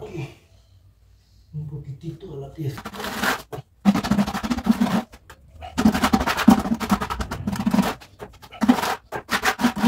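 A trowel slaps wet mortar onto a tile.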